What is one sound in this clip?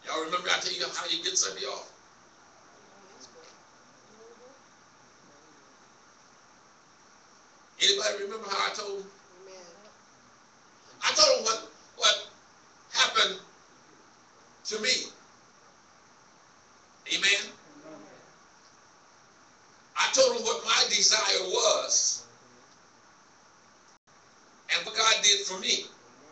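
A man preaches loudly into a microphone in bursts, heard through loudspeakers in an echoing hall.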